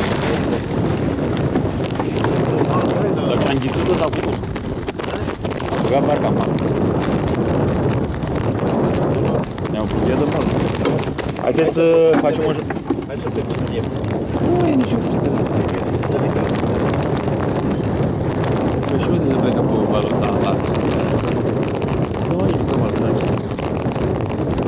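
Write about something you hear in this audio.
Wind blows across the microphone outdoors.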